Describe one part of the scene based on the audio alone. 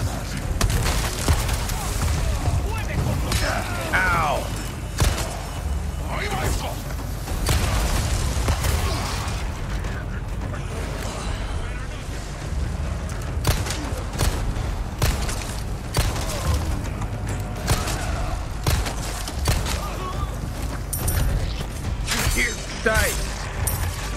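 Enemies groan and shout nearby.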